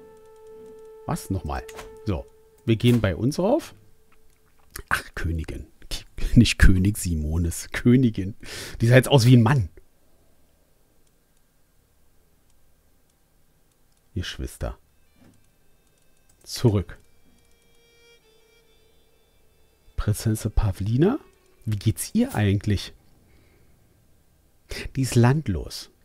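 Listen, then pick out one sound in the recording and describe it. A middle-aged man talks calmly and casually into a close microphone, in bursts with pauses.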